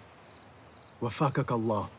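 A second man speaks warmly and closely.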